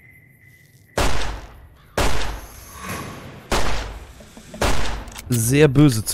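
A revolver fires several loud shots with echoing booms.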